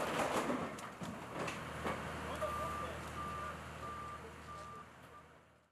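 A heavy machine's engine idles nearby.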